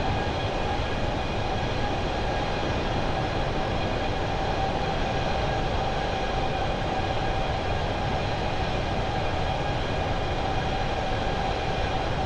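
Jet engines roar steadily with a constant high whine.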